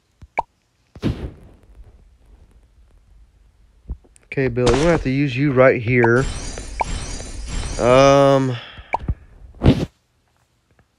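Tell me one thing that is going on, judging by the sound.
Cartoon game sound effects pop and zap in quick bursts.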